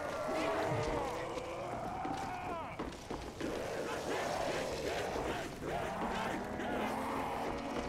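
A zombie growls and moans close by.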